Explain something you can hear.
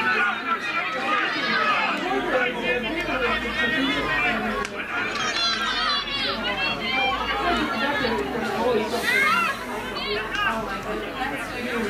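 Spectators chatter at the side of the field.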